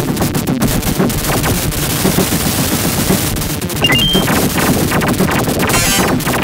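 Arcade game explosions boom again and again.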